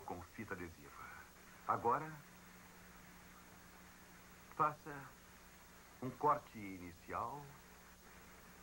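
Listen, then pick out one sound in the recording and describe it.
A man speaks calmly and clearly, in short phrases with pauses.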